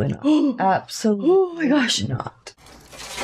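A young woman exclaims with animation close to a microphone.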